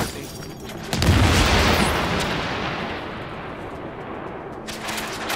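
An explosion booms and fades.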